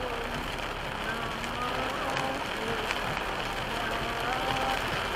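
Heavy rain pelts a car's windshield and roof.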